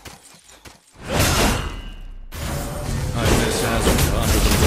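Sword strikes slash sharply.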